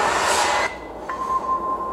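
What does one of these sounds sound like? A man blows out a long breath of smoke close by.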